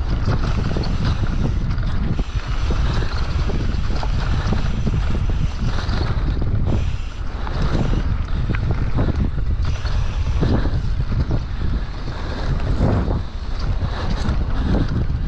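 Bicycle tyres rattle and crunch over a dirt trail.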